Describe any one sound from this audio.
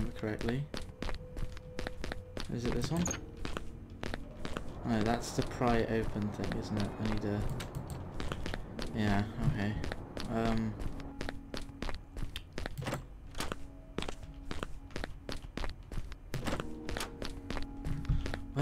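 Footsteps thud on creaking wooden floorboards.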